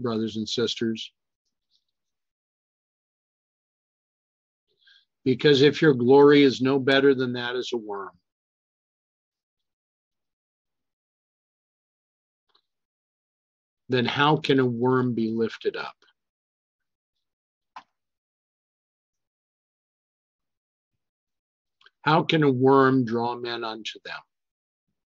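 An older man speaks calmly over an online call, in short bursts with pauses.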